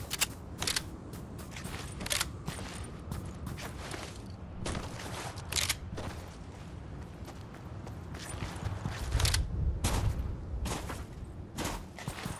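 Quick footsteps patter over sand and rock.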